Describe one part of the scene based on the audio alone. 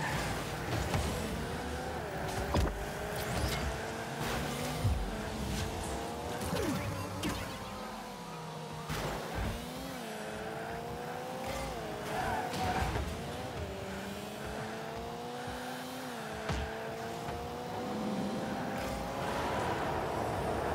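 A car engine hums and revs up and down throughout.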